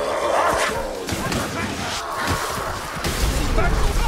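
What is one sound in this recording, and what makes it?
A sword swishes and strikes with a sharp clash.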